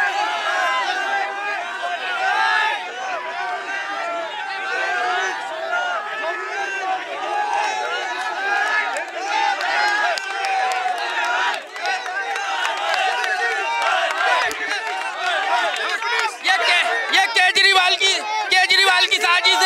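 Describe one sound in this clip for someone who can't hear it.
A large crowd of men shouts and clamours loudly outdoors.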